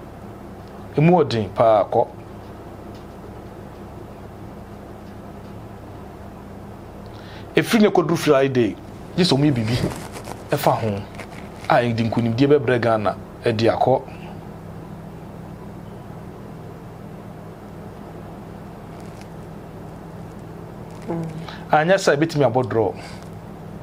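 A man speaks close to a microphone, in short bursts with pauses.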